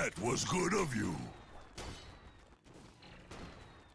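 Video game combat effects clash and crackle.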